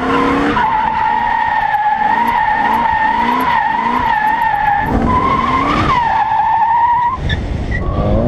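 Tyres squeal loudly as a car slides.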